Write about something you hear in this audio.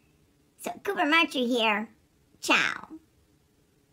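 A cat meows twice up close.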